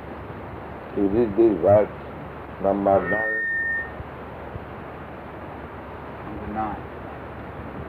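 An elderly man speaks slowly and calmly, heard through an old, hissy recording.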